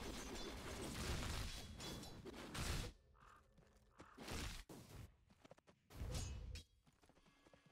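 Video game combat sounds clash and crackle in bursts.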